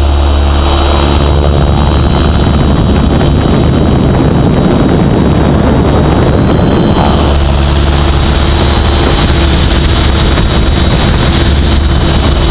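A model helicopter's rotor blades whir and buzz, changing pitch as it tumbles.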